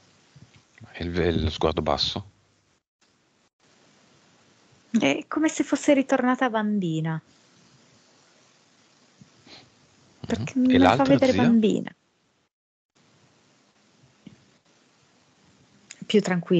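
A young woman talks with animation through an online call.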